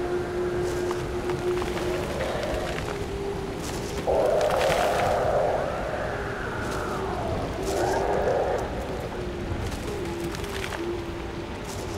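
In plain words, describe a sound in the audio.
Footsteps thud on a wooden bridge.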